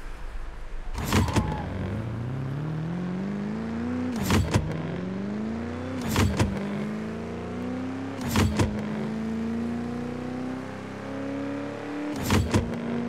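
A racing car engine accelerates, rising in pitch through several gear changes.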